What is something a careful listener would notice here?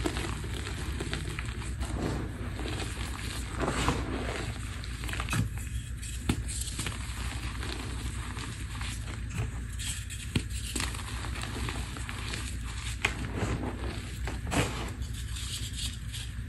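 Clumps of chalk crumble and patter down into a bowl.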